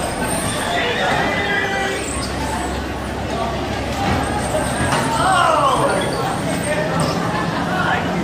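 Young people chatter and call out nearby.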